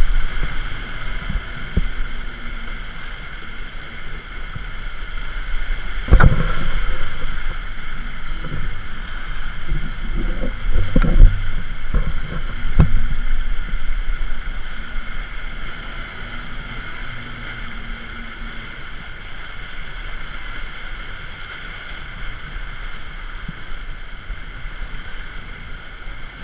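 Water rushes and splashes along the hull of a sailing boat.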